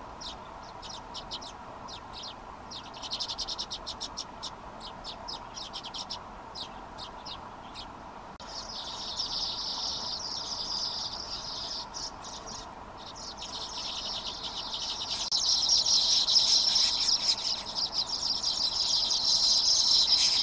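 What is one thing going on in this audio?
A small bird chirps rapidly nearby.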